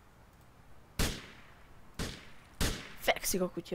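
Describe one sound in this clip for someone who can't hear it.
Gunshots ring out in sharp bursts.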